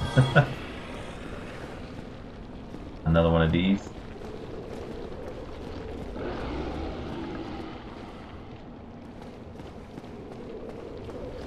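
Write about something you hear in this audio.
Armoured footsteps run quickly over a stone floor.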